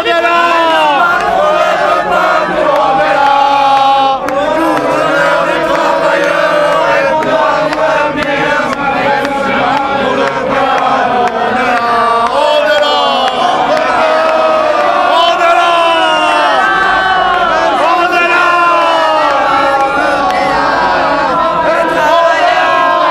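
A crowd of men and women chants loudly and in unison close by.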